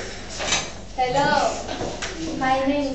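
A teenage girl speaks clearly, introducing herself.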